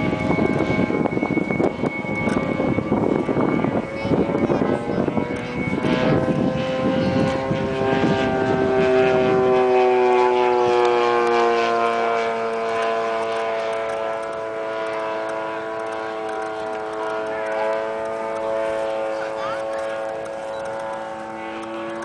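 A propeller plane's engine drones overhead, its pitch slowly falling as it passes.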